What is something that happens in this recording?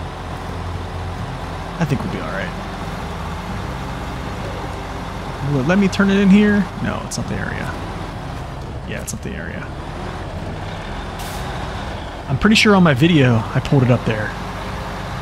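A heavy truck engine rumbles steadily at low speed.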